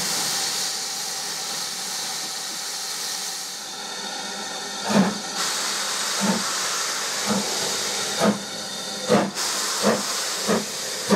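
A steam locomotive hisses loudly as steam escapes.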